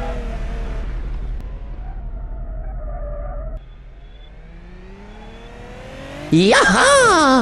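A car engine hums and revs, rising in pitch.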